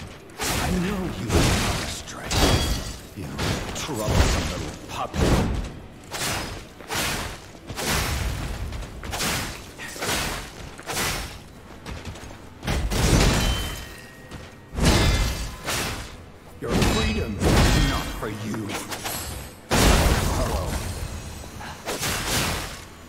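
Swords clash and slash again and again in a fight.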